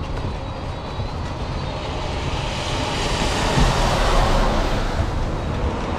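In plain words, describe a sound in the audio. A bus rumbles past close by.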